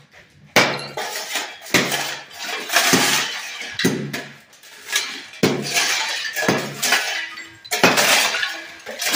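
A scraper blade strikes and scrapes loose tiles off a hard floor, cracking and rattling them.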